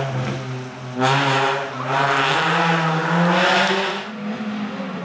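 A car engine revs up loudly, changing gears as it climbs away.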